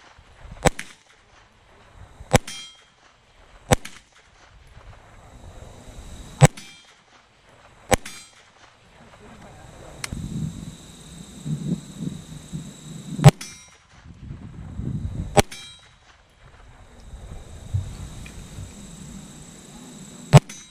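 A pistol fires single loud shots that echo outdoors.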